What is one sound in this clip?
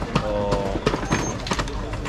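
A young man pours juice into cups.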